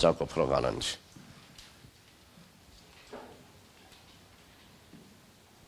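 An eraser rubs across a chalkboard.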